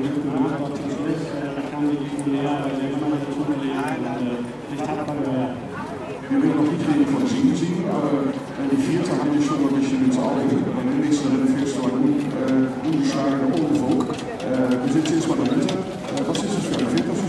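An older man asks questions into a handheld microphone.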